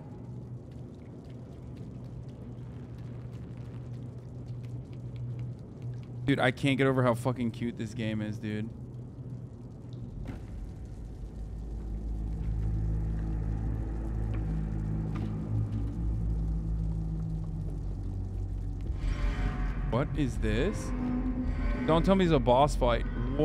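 A low, eerie drone hums steadily.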